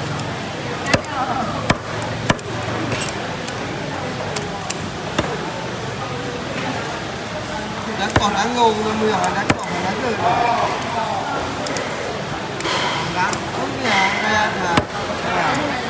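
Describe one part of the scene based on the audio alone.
A knife knocks against a wooden chopping block.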